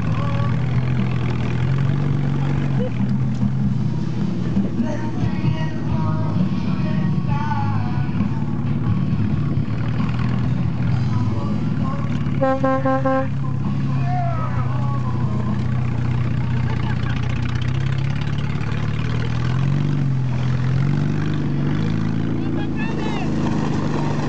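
An engine drones steadily while towing.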